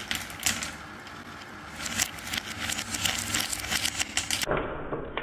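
Marbles click against each other and the wooden rails.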